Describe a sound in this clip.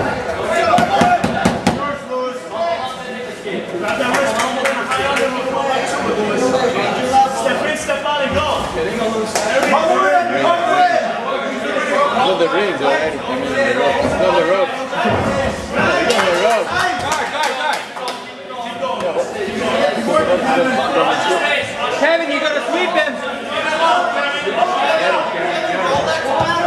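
Fighters' bodies thud against each other and the mat.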